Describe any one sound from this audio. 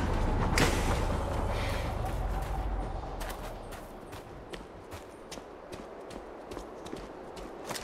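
Footsteps thud on stone as someone runs.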